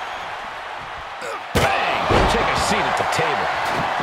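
A heavy wooden table slams down with a loud crash.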